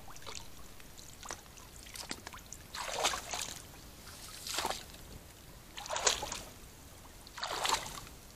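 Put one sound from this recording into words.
An animal tears and munches grass close by.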